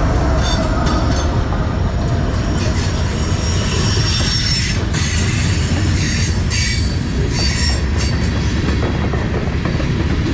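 Freight wagons clatter and squeal over the rails.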